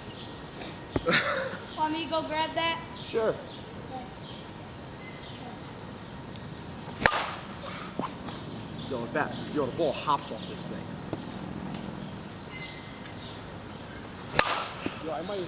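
A metal bat cracks sharply against a ball.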